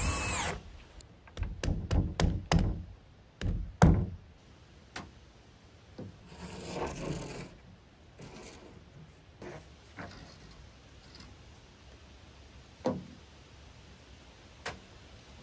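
Tools and boards knock with sharp taps.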